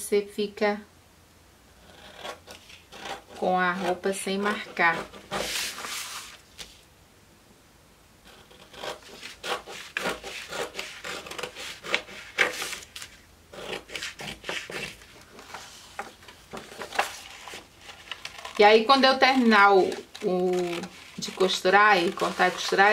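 Scissors snip through stiff paper.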